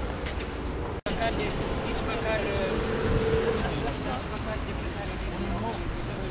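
Men talk with one another nearby, outdoors.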